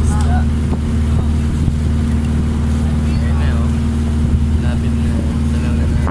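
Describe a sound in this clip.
A young man talks cheerfully close to the microphone.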